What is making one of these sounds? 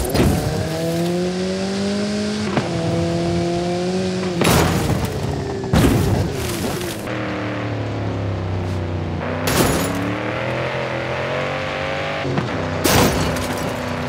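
A car engine revs hard and shifts through its gears.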